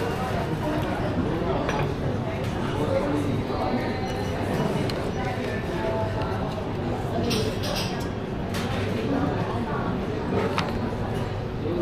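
A plastic fork scrapes in a bowl of noodles.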